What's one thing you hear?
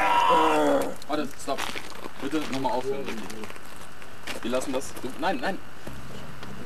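A man talks nearby in short bursts.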